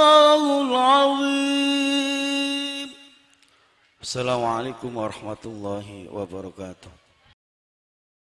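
A man sings in long, held notes through a microphone.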